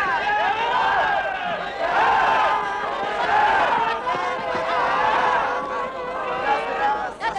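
A trombone plays a lively tune.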